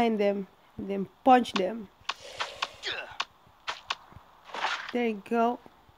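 Punches thud in quick blows.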